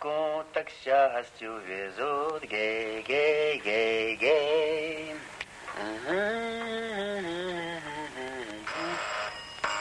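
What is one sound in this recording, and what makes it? A middle-aged man sings a tune to himself close by.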